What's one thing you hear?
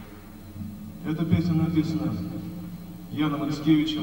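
A man sings into a microphone through loudspeakers.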